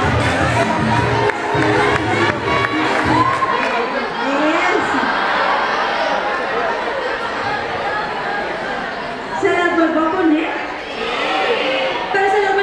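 A large crowd of young people chatters loudly in an echoing hall.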